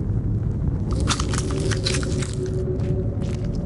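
A magic spell crackles sharply.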